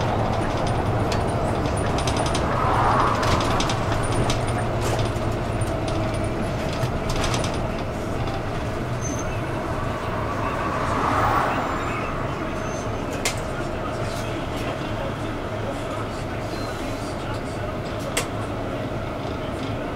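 Loose fittings rattle and click inside the bus.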